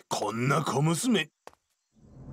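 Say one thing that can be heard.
A man speaks gruffly, close by.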